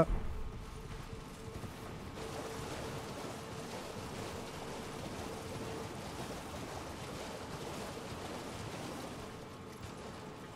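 A horse gallops with steady, rapid hoofbeats on hard ground.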